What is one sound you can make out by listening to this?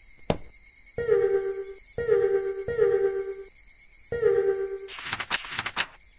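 Short electronic tones chime as menu selections are made.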